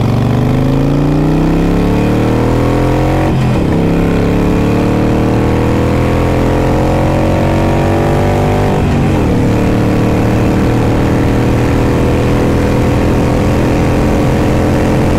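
A motorcycle engine rumbles loudly and rises in pitch as it speeds up, dropping briefly at each gear change.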